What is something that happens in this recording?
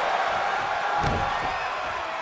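A heavy body slams onto a wrestling ring mat with a thud.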